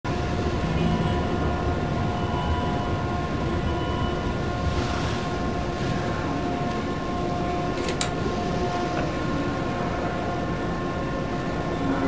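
A stopped electric train hums steadily.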